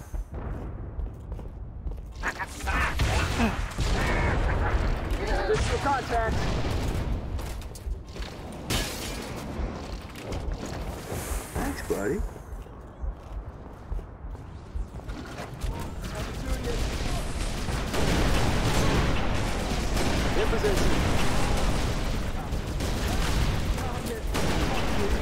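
A rifle fires a single sharp shot.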